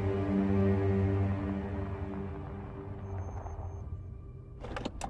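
A car engine rumbles and winds down to a stop.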